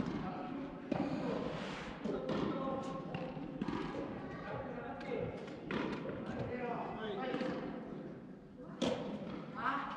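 Tennis balls are struck with sharp pops in a large echoing hall.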